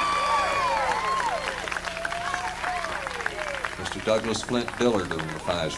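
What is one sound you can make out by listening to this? A banjo is picked in quick notes.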